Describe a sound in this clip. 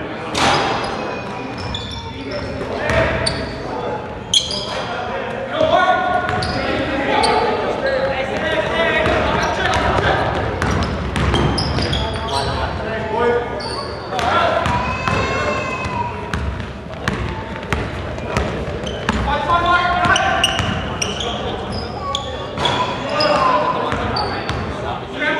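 Young men shout and call to each other across the court.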